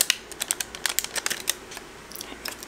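Small granules rattle and patter as they are poured into a paper cup.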